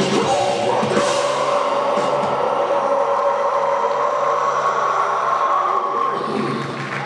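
A rock band plays loudly through powerful speakers in a large hall.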